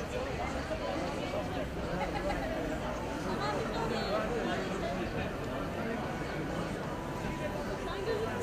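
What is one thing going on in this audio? A crowd of men murmurs and talks outdoors.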